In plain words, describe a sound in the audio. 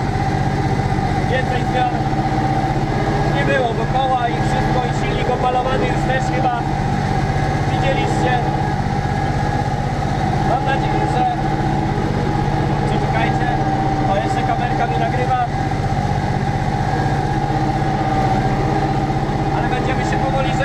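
A plough rattles and clanks through the soil behind the tractor.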